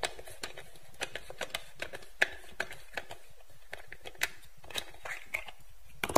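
A screwdriver clicks and scrapes against a plastic toy's screw.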